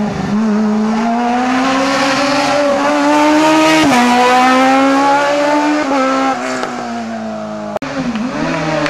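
A race car engine revs hard and roars past close by.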